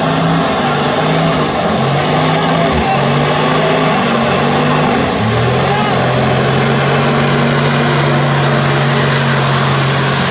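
An off-road vehicle's engine roars and revs hard.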